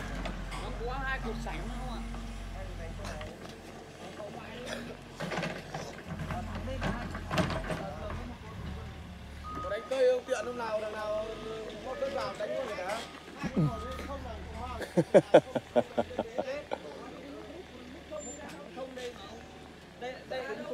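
Men talk outdoors.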